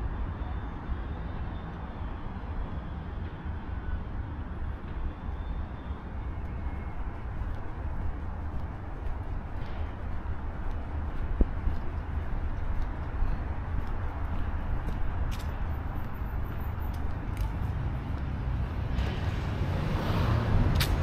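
Traffic hums steadily along a nearby street.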